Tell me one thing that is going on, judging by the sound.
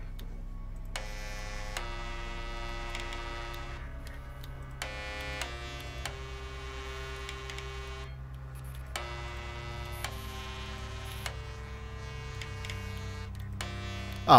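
Buttons play short musical tones as they are pressed.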